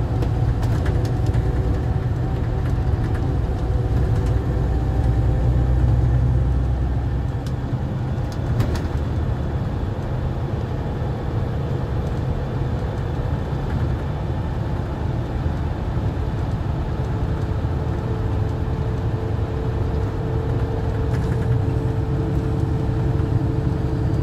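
A bus engine rumbles low and steady as the bus drives along.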